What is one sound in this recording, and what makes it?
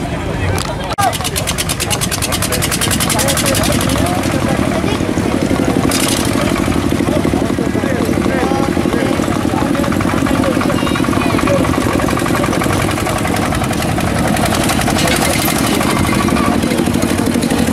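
A small tractor engine chugs steadily close by.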